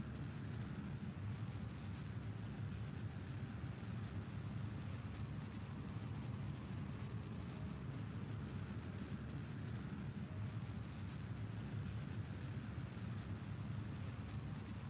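A jet engine roars with a steady low rumble.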